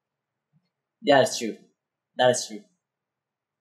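A young man speaks briefly and calmly, close to a microphone.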